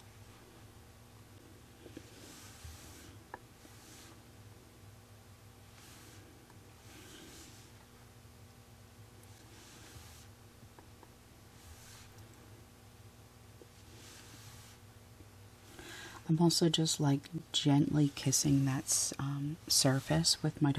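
A dotting tool taps softly on a painted surface.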